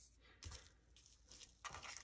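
Hands pat and press paper flat on a mat.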